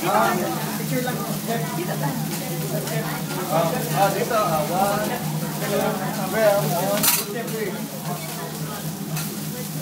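A young woman laughs and talks nearby.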